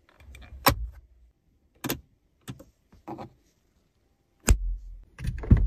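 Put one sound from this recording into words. Plastic parts click and snap under a hand.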